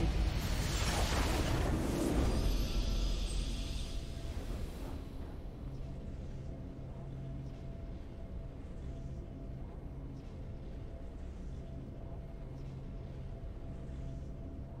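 A triumphant victory fanfare swells, then settles into a soft pulsing tune.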